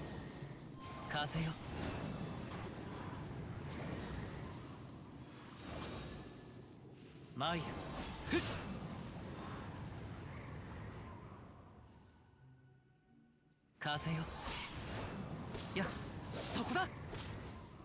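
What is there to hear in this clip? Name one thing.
Sword strikes whoosh and clash in quick bursts.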